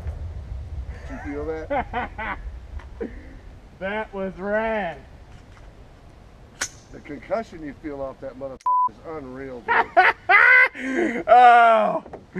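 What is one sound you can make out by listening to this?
A man talks and laughs excitedly nearby.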